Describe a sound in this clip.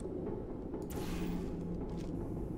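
A game's portal gun fires with a whooshing burst.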